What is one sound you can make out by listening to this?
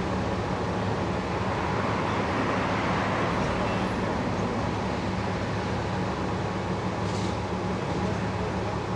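An ambulance engine idles with a steady low hum.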